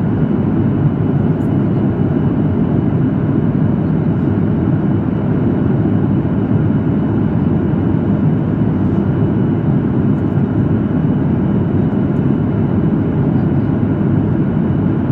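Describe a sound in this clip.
Jet engines roar in a steady low rumble inside an aircraft cabin.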